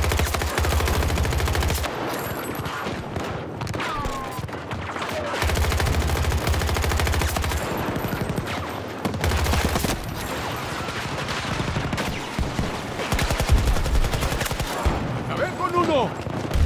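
Rifle fire rattles in rapid bursts.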